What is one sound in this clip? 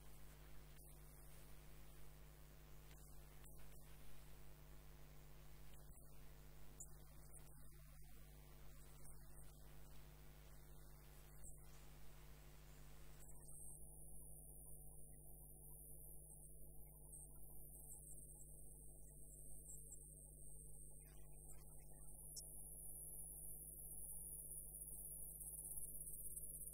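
A wood lathe motor hums as it spins a wooden blank.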